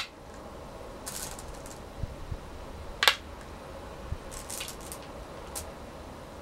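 Stones clatter softly in a bowl.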